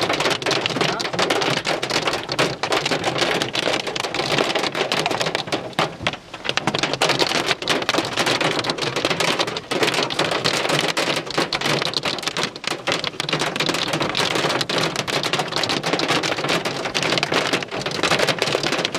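Hail rattles and clatters on the ground and leaves.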